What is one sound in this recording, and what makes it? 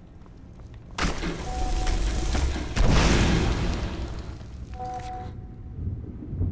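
Flames roar and whoosh loudly.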